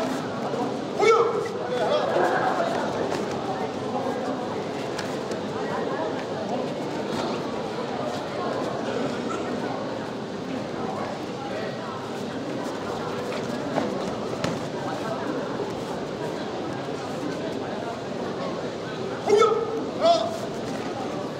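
A young male fighter shouts sharply.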